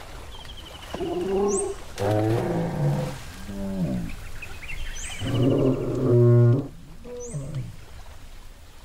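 A large animal lets out deep, groaning calls.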